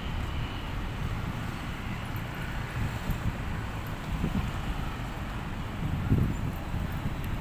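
Traffic hums along a nearby road.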